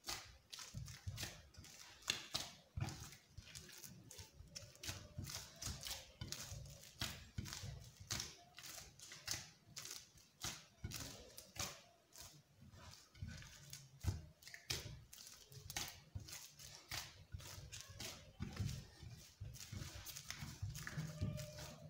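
Dough thumps against a clay bowl.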